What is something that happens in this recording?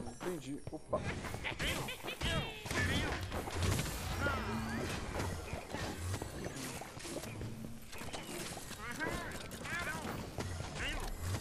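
Magic blasts whoosh and crackle in a video game battle.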